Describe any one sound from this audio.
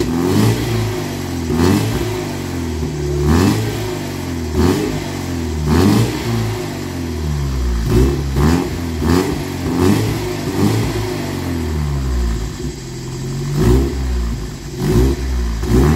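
A car engine runs with a low, uneven rumble that surges again and again.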